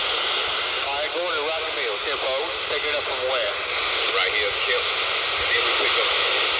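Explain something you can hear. A man's voice crackles faintly through a radio loudspeaker.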